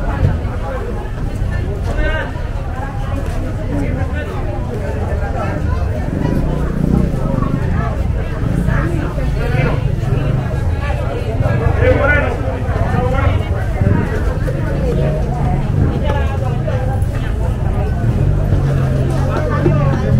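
A crowd of men and women chatter nearby, outdoors.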